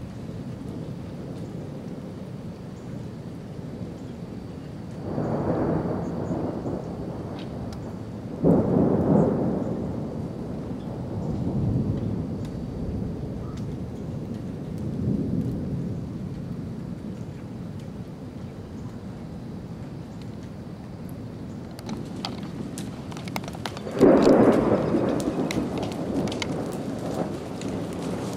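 Wind blows outdoors, rushing and gusting through leafy trees.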